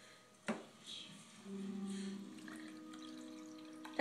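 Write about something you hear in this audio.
Liquid pours from a jug into a glass.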